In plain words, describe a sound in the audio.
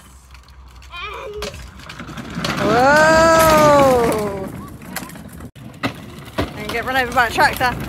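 Plastic toy tractor wheels rumble along a paved path.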